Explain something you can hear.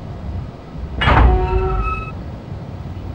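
A valve releases with a sudden loud burst that rings briefly.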